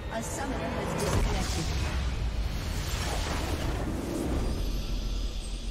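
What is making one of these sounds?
A large magical explosion booms and crackles.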